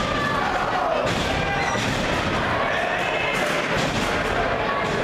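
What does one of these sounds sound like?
Wrestlers slam down onto a wrestling ring mat with heavy thuds.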